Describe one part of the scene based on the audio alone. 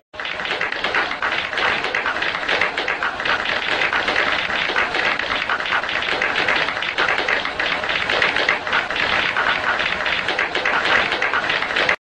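A large crowd claps loudly.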